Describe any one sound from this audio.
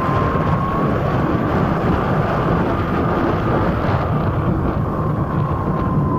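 An electric motor hums with a steady high whine.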